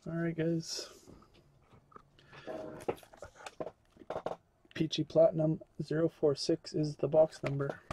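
Hands handle a cardboard box with rustling and scraping.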